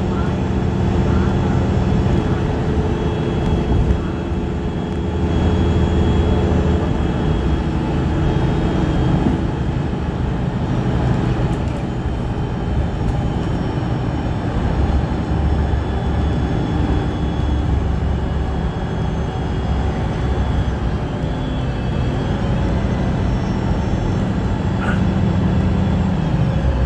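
Wheels clatter and squeal on the rails.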